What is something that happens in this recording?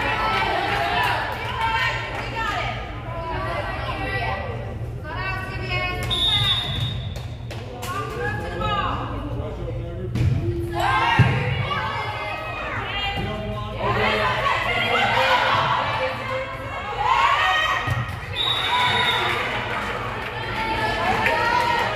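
Young women call out and cheer in a large echoing gym.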